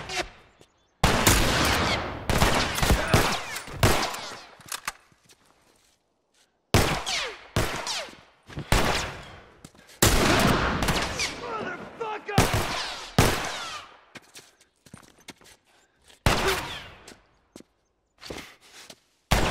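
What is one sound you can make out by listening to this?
A scoped rifle fires sharp shots that echo off the buildings around.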